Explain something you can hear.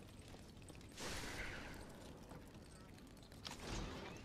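Electric sparks crackle and fizz.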